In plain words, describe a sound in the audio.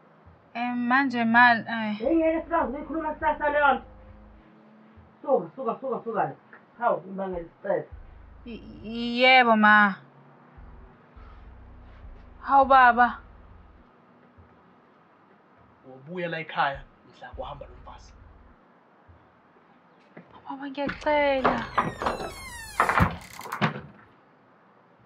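A woman speaks with a raised, pleading voice nearby.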